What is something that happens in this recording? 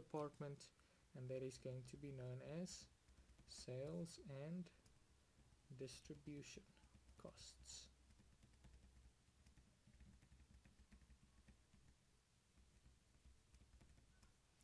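A marker squeaks and scratches as it writes on a whiteboard.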